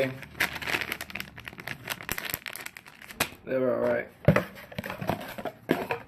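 Paper and cardboard rustle and crinkle in hands.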